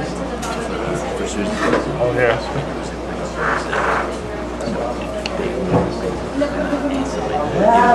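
An electric guitar plays.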